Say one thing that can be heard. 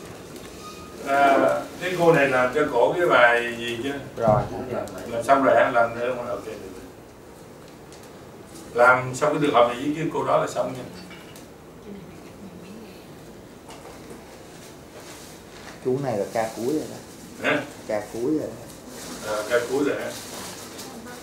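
A man speaks calmly and instructively nearby.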